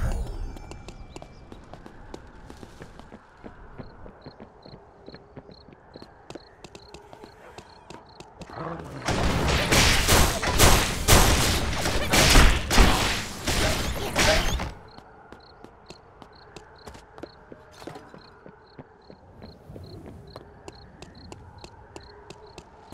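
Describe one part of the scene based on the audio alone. Footsteps tap steadily on hard ground.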